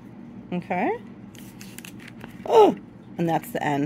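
Paper rustles as a page is turned.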